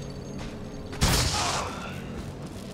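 A magical burst whooshes and crackles.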